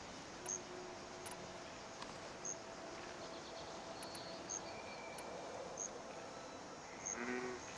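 Short soft interface blips sound now and then.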